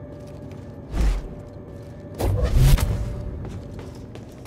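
A heavy metal gate clanks and grinds open.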